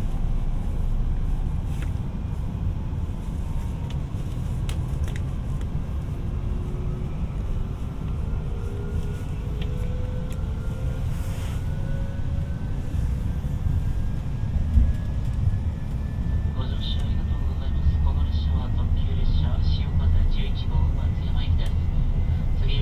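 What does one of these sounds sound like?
A train rumbles steadily along the track, heard from inside.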